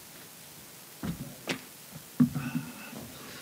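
Thumps and knocks sound on a table close to a microphone.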